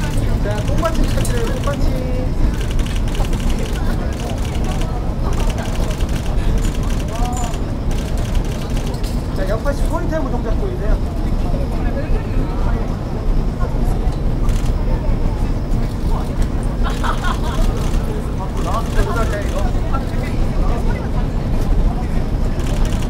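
A crowd of young women chatters and cheers outdoors.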